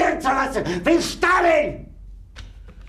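A middle-aged man shouts furiously up close.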